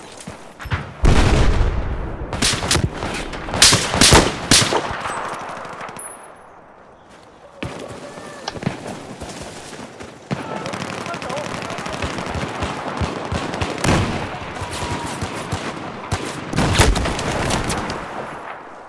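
Gunfire bursts loudly from a rifle in short rapid volleys.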